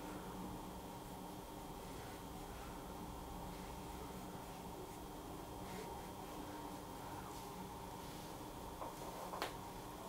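A brush lightly strokes wet paper.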